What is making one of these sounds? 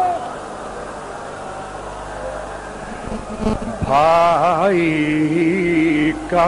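A young man chants loudly and with emotion into a microphone, heard through loudspeakers.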